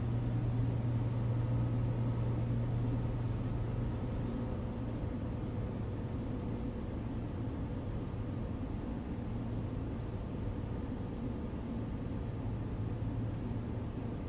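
A small propeller plane's engine drones steadily.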